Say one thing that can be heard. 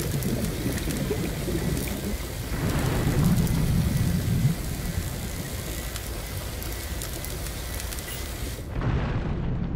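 A cutting tool whirs steadily underwater.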